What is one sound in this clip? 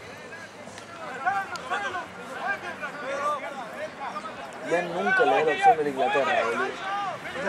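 Young men shout to each other outdoors on an open field.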